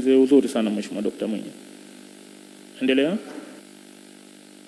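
A man speaks briefly into a microphone in a large room.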